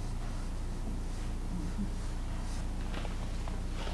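Chalk scratches and taps on a chalkboard.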